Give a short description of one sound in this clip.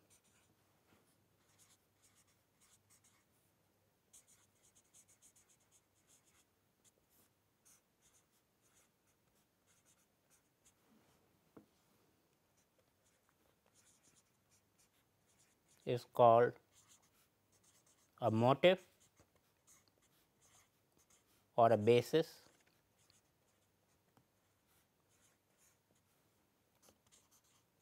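A marker scratches and squeaks softly on paper.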